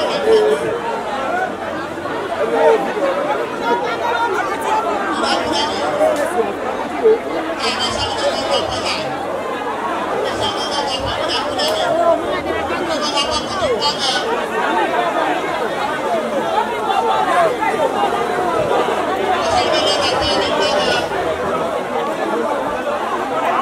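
A large crowd chatters and murmurs loudly outdoors.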